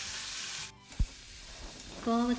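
A metal spoon scrapes and stirs in a pan.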